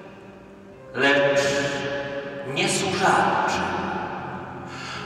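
A man reads aloud calmly into a microphone in a large echoing hall.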